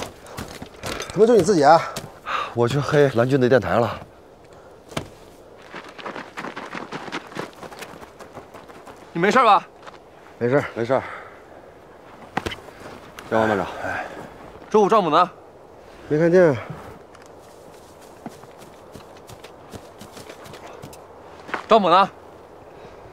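Several men speak in short, firm exchanges, close by, outdoors.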